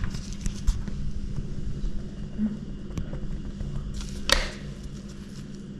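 A small tool taps and scrapes lightly on a cutting board.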